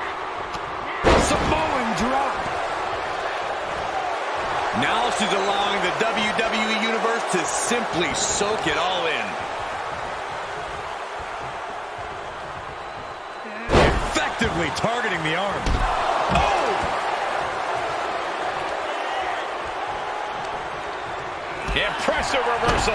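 A body slams heavily onto a wrestling ring mat with a loud thud.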